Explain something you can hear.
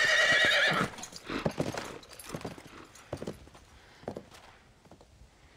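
Horse hooves thud as a horse rides away.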